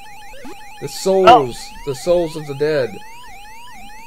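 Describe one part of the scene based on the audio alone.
An arcade game plays a descending electronic tune as a player is caught.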